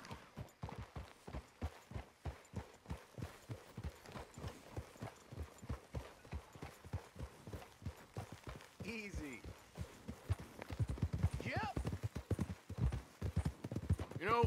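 Horse hooves thud steadily on soft ground at a trot.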